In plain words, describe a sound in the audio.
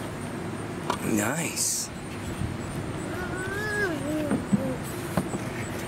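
A toddler babbles and coos nearby.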